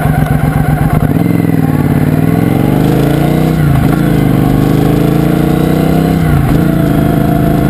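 A motorcycle engine revs up and down as gears shift.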